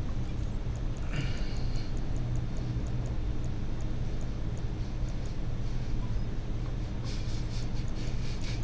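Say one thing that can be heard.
A young man talks calmly close to a microphone.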